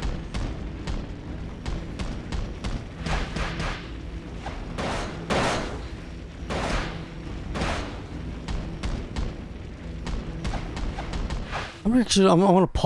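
Fireballs whoosh and roar in bursts.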